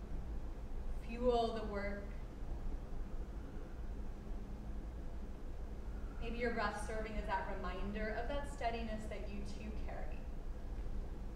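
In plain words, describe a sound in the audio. A woman speaks calmly, giving instructions in an echoing room.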